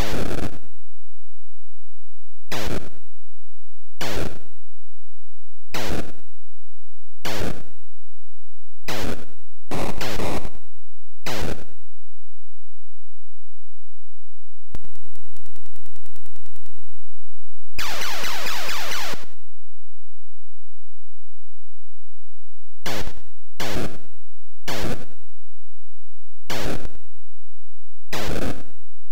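Short electronic explosion bursts go off again and again as missiles are shot down.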